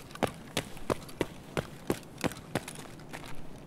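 Footsteps tap on a hard floor in an echoing space.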